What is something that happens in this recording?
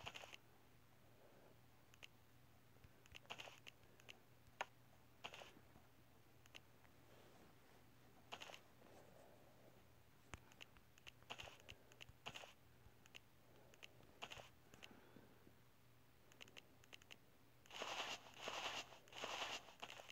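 Short, soft interface clicks and taps sound now and then.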